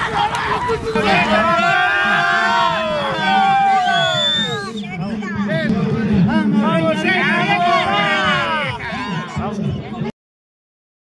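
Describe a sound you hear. A crowd of men and women cheers loudly.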